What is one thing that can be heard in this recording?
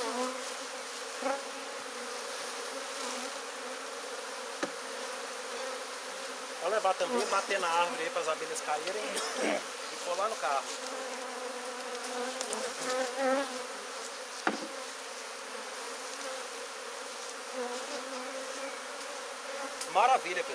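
Wooden hive boxes knock and scrape as they are lifted and set down.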